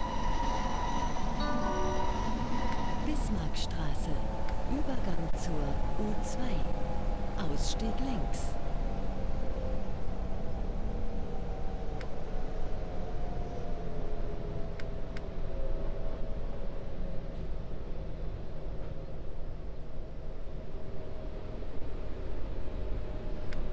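A subway train rumbles steadily through a tunnel.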